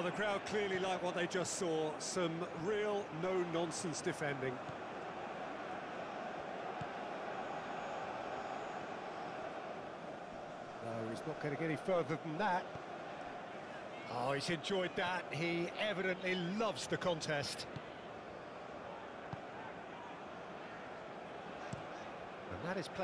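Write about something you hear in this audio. A large crowd murmurs steadily in a big stadium.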